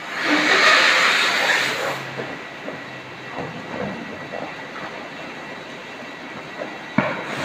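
Plastic bags full of water rustle and crinkle against a tank wall.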